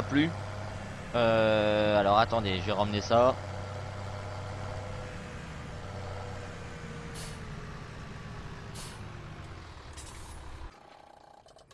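A tractor engine hums steadily at low pitch, then cuts off.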